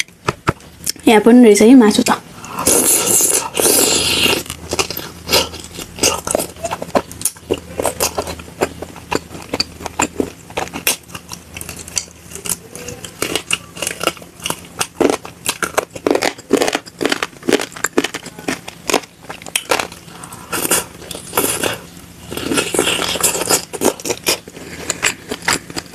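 A young woman chews food wetly and loudly, close to a microphone.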